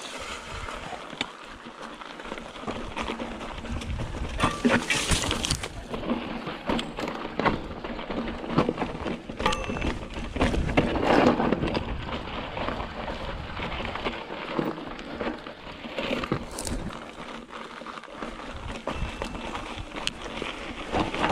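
Bicycle tyres roll and crunch over a rocky dirt trail.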